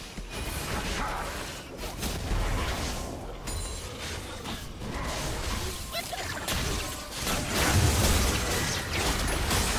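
Heavy booming impacts thud during the fight.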